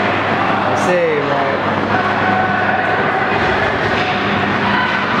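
Spectators chatter in a large echoing ice rink.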